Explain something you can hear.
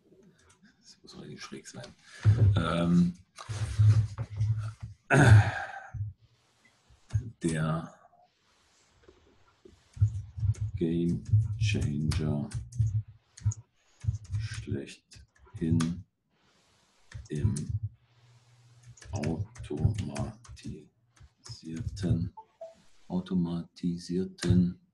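An elderly man talks calmly into a nearby microphone, in short phrases with pauses.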